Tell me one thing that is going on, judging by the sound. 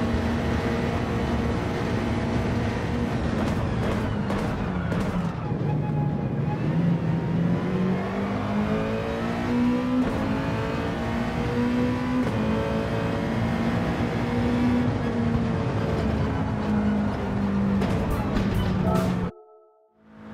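A racing car engine roars and revs up and down through the gears.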